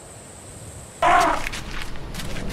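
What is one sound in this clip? An elephant trumpets loudly.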